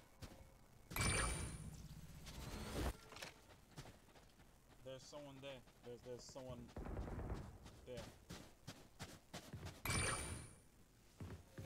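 A magical whoosh bursts out with a shimmering ring.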